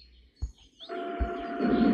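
A train's electric motor starts up with a rising hum.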